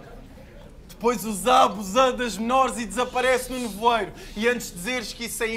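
A young man raps forcefully into a microphone, heard through loudspeakers.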